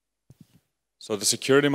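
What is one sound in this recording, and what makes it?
A man speaks clearly into a microphone, heard through a loudspeaker.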